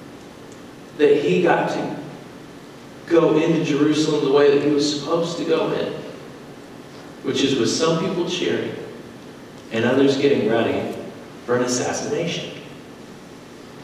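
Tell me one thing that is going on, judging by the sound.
A woman speaks calmly through a microphone in a large echoing hall, with pauses between phrases.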